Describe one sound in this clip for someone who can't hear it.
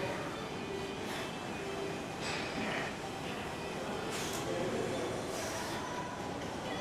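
A man exhales sharply with each lift, close by.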